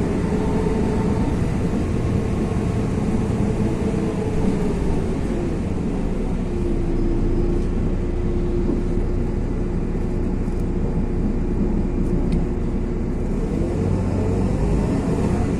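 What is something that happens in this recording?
Car tyres hiss on a wet road.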